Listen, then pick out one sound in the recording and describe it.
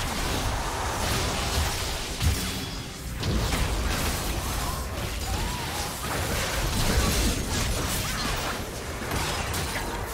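Spell effects crackle and burst in rapid succession.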